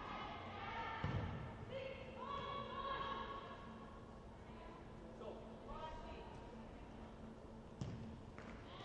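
A ball is kicked with sharp thuds that echo around a large hall.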